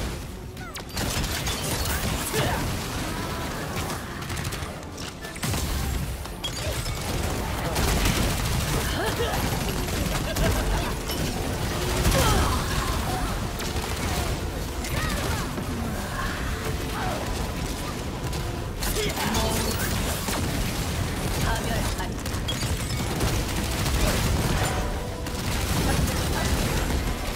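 Heavy booming impacts thud again and again.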